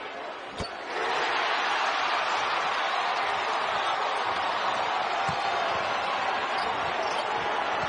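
A crowd roars loudly as play resumes.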